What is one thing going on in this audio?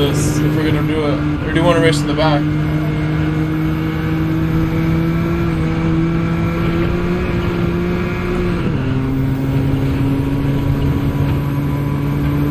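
A racing car engine drones steadily at high revs and drops in pitch as it shifts gear.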